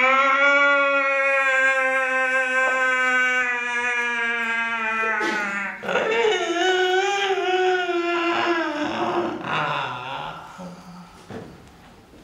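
An elderly man sings a long, held vocal tone that then wavers and fades.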